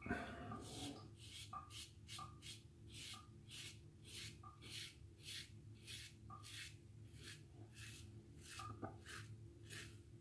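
A razor scrapes stubble in short, regular strokes.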